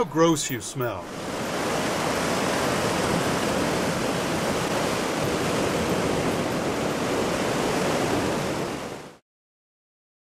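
Sea waves rush steadily against a rocky shore.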